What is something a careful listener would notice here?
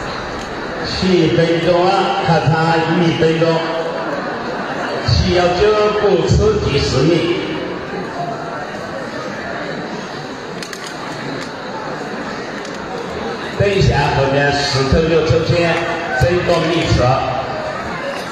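A man talks loudly close by in bursts.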